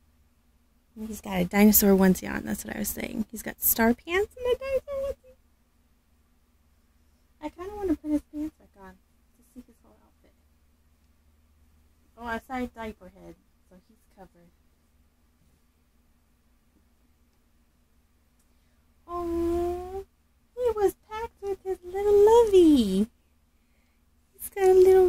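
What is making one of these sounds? A woman speaks in a high, playful voice close by.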